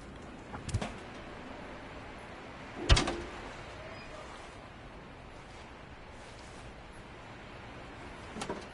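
A metal pole clangs sharply a few times.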